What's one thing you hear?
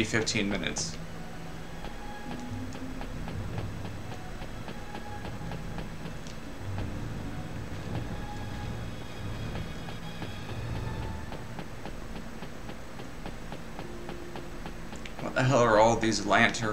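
Quick footsteps patter steadily on a hard floor.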